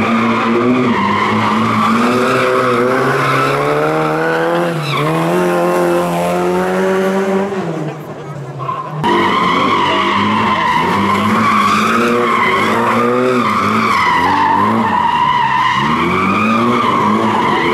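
A rally car engine roars loudly, revving up and down as the car speeds past.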